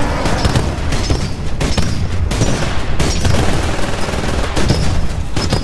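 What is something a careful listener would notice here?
A heavy cannon fires in rapid, booming bursts.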